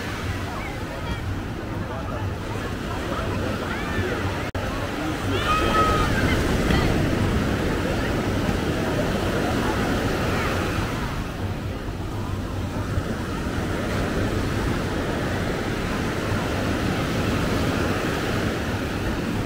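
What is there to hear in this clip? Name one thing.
A busy crowd chatters and calls out all around, outdoors.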